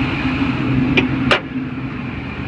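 A car hood slams shut.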